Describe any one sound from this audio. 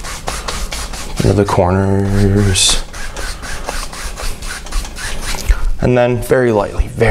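A brush strokes rapidly across a canvas.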